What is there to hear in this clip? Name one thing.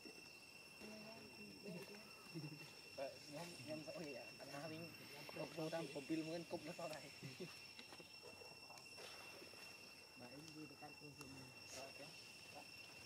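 A baby monkey whimpers and squeaks close by.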